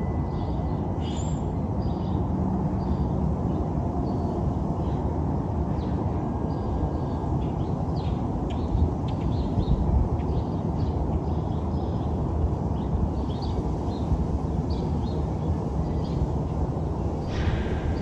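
Small birds chirp and twitter outdoors.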